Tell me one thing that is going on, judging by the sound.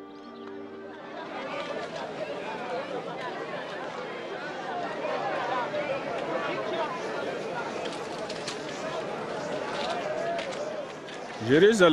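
A crowd of men and women murmurs and chatters all around.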